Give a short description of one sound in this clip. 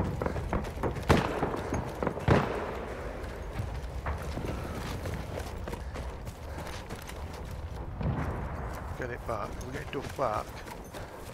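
Gunfire crackles in the distance.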